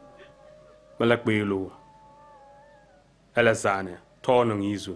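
A man speaks calmly and gently, close by.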